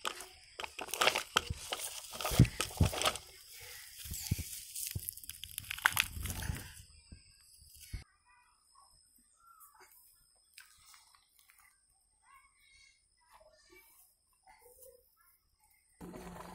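Dry soil and pebbles crunch and scatter under small hands.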